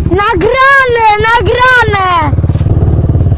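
A quad bike engine revs loudly and passes close by.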